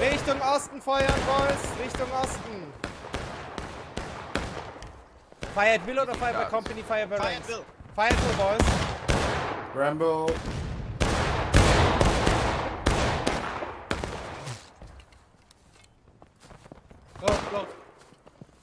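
Rifle shots crack and boom repeatedly nearby and far off.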